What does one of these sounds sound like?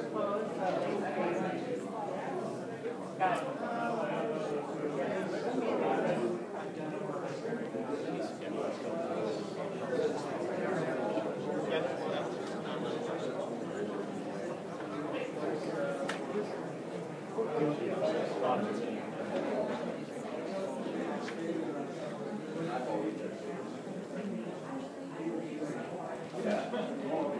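A crowd of people chatter all around in a busy indoor hall.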